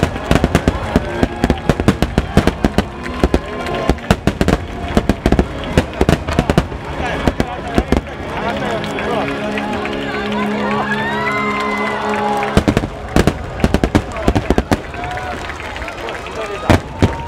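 Fireworks explode with loud, rapid booms.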